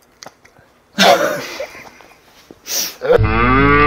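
A young man gasps loudly.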